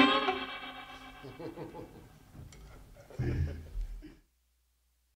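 A man sings into a microphone, close up.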